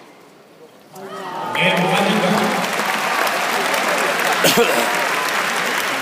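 A large crowd cheers loudly in a big echoing arena.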